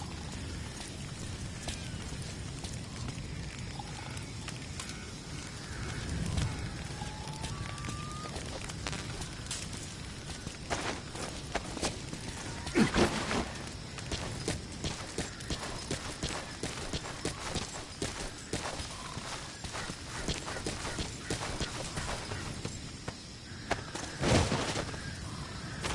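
Footsteps crunch on gravel and dry ground.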